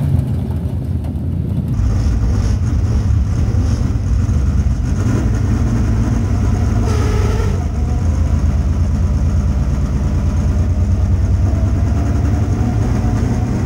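A race car engine roars loudly and steadily from inside the cockpit.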